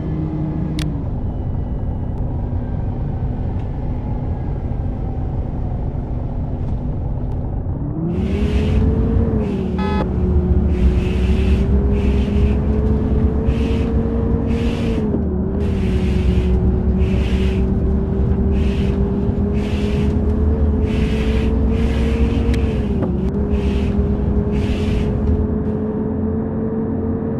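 A bus engine hums steadily and rises in pitch as the bus speeds up.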